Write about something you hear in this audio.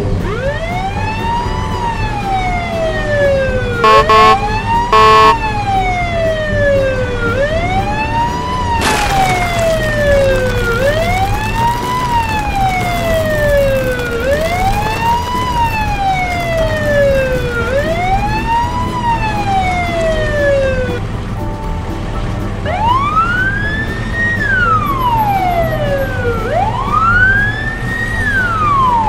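A police siren wails steadily, rising and falling over and over.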